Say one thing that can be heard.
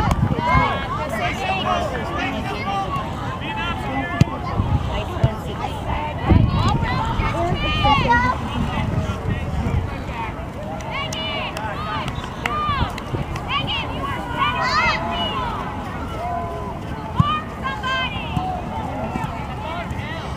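Adult spectators cheer and talk close by.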